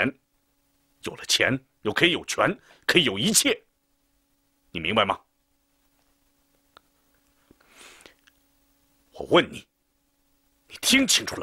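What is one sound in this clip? A middle-aged man speaks sternly and close by, in short bursts.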